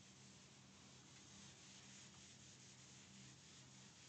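A cloth eraser rubs across a board.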